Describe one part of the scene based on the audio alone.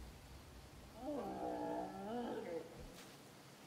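A stag bellows loudly.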